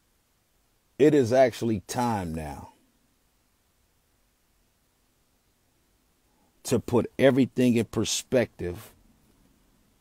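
A young man speaks close to the microphone in short bursts, with pauses between.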